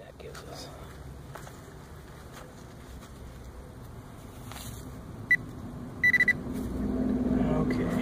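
Gloved hands crumble and rustle through loose soil.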